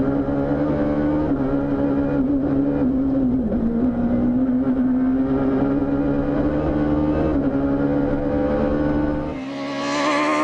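A rally car engine roars loudly from inside the cabin as the car speeds along.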